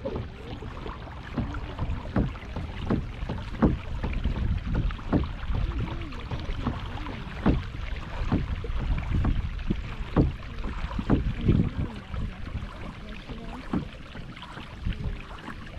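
Paddles splash and drip in water.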